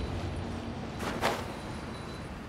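A sword whooshes through the air in a quick slash.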